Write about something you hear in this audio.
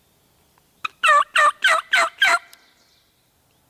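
A wild turkey gobbler gobbles close by.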